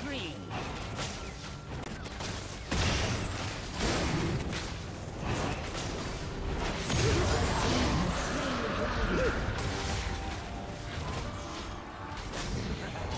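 Magical spell effects whoosh and crackle in a fantasy battle.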